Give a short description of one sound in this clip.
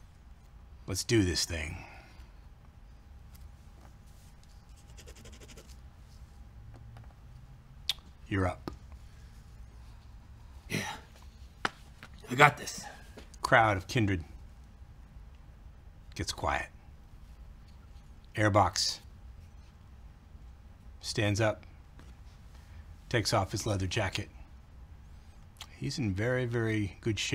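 A man speaks calmly in short bursts over a microphone, with pauses between phrases.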